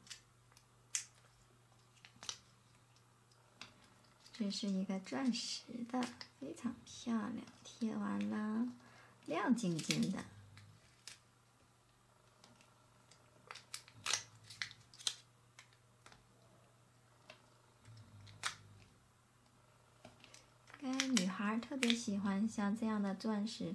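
Fingertips tap and press stickers onto card.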